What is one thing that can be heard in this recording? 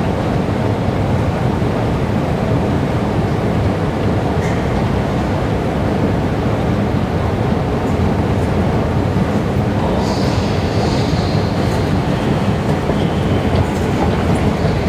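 A descending escalator rumbles and hums.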